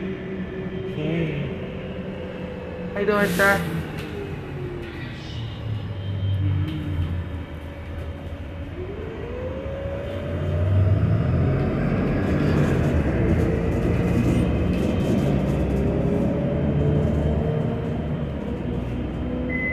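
A bus engine rumbles steadily from inside the bus, its whine rising as it speeds up.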